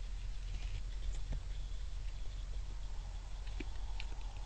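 Deer chew and crunch on food close by.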